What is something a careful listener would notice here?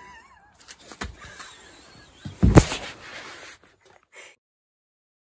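Fabric rustles and thumps as a phone is handled and pocketed.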